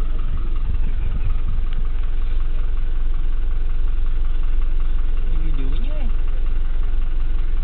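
A bus engine rumbles low from inside the cabin.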